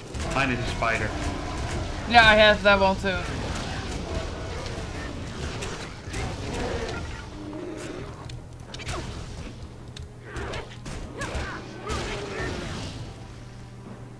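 Magic spells crackle and burst with sharp impacts during a fight.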